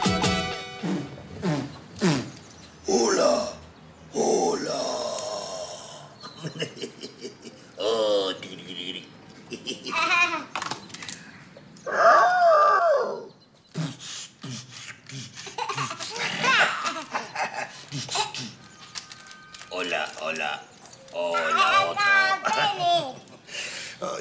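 A man talks playfully to a child, close by.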